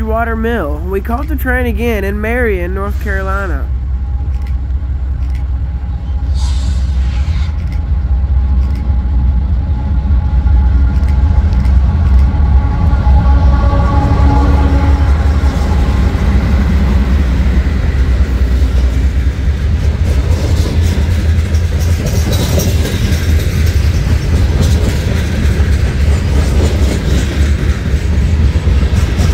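A diesel locomotive rumbles deeply as it approaches and passes.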